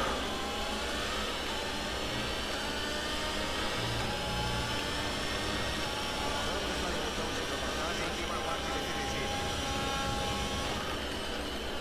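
A racing car engine whines at high revs, rising through the gears.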